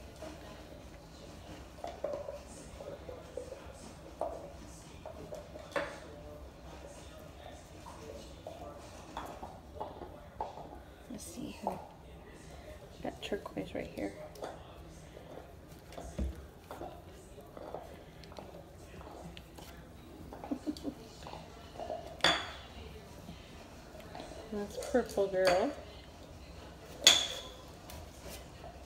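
Puppies scrabble and shuffle on a soft blanket.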